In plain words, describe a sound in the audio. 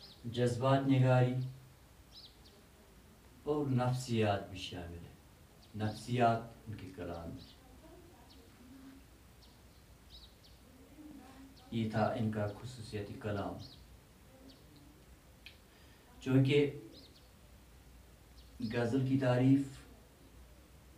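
An elderly man speaks calmly in short phrases with long pauses, close by.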